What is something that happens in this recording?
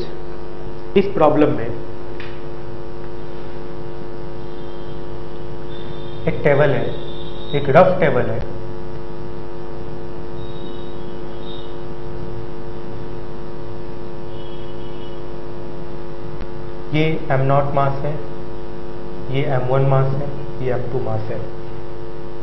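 A man speaks calmly and explains, close by, with pauses.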